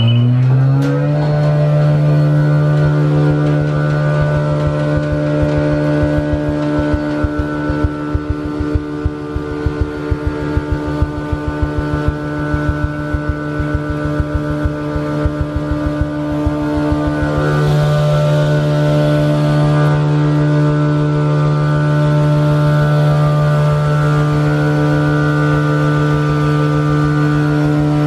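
A machine drones loudly and steadily.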